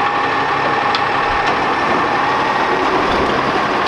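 A bin clunks against the truck's hopper.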